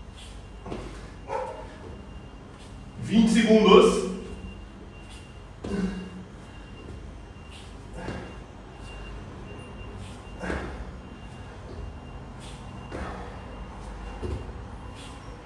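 A man exhales sharply with each sit-up.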